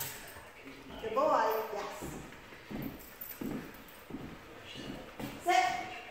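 A middle-aged woman gives short commands.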